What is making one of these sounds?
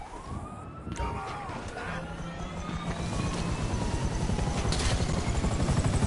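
A helicopter's rotor thumps louder and louder as it spins up.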